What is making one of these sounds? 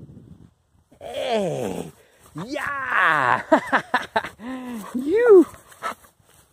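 Dogs whine and yelp excitedly close by.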